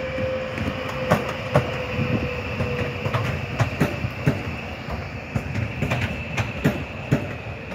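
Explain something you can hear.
Train wheels clatter over rail joints.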